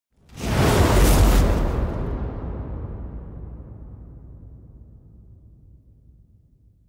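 A fire whooshes up in a loud burst of flame and slowly dies away.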